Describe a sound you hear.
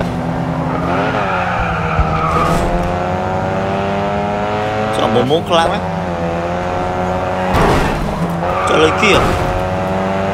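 Tyres screech as a car drifts.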